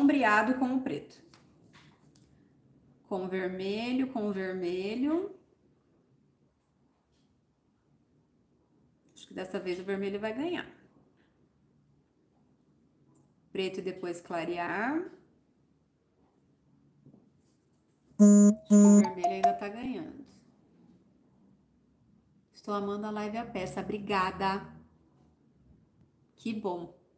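A woman speaks calmly in short phrases close to a microphone, with pauses between them.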